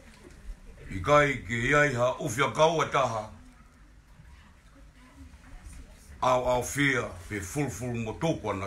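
A man sings out loudly nearby in short phrases.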